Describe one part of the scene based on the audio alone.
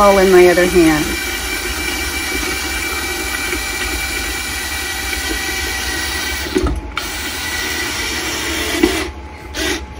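A power drill whirs steadily.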